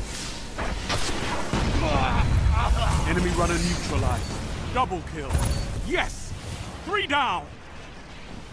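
Heavy gunfire blasts in loud bursts.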